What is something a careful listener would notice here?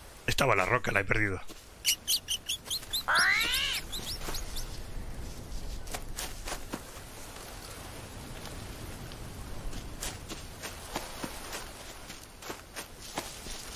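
Leaves rustle as someone pushes through dense plants.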